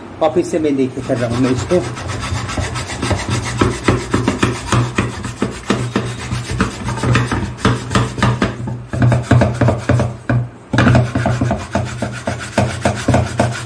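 A scrubbing sponge scours a metal pan with rhythmic rasping strokes.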